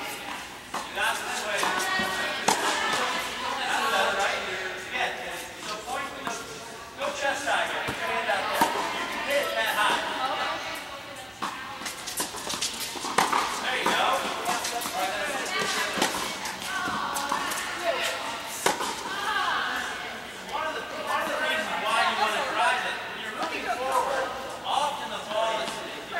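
Tennis racquets strike a ball, echoing in a large indoor hall.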